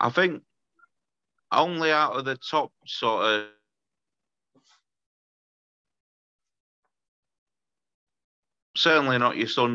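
A young man speaks calmly and close up, with pauses.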